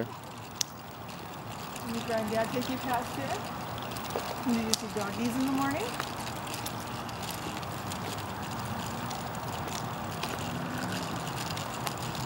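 Stroller wheels roll steadily over pavement outdoors.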